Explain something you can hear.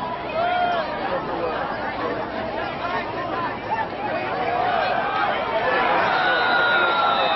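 Young men on the sideline shout and call out.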